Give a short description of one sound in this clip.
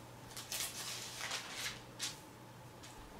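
Book pages rustle and flip as they are turned.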